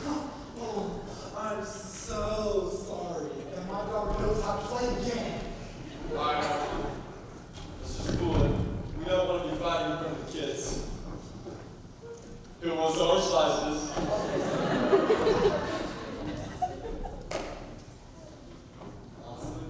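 Young men speak with animation in a large echoing hall.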